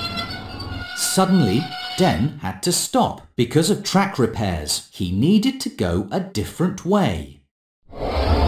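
A man speaks anxiously and with animation, close by.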